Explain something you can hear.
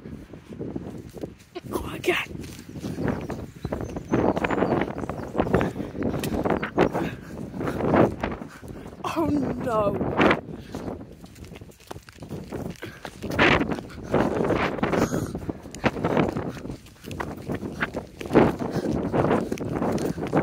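Footsteps scuff on pavement close by.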